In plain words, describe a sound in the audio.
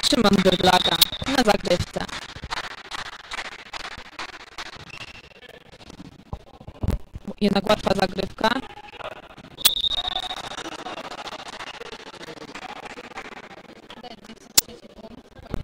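A volleyball is struck sharply.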